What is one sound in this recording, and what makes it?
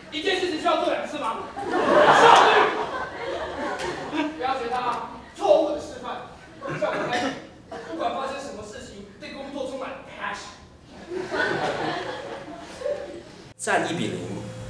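A young woman speaks with animation in a large room.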